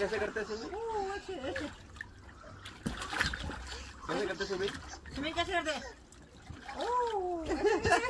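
Water splashes and sloshes in a small pool.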